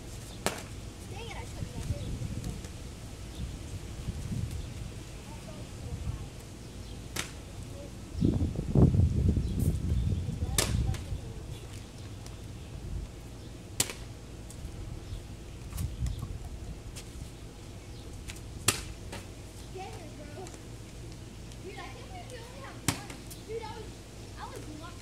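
Young boys talk and call out nearby outdoors.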